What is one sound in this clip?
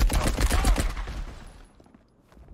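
A gunshot booms and echoes away.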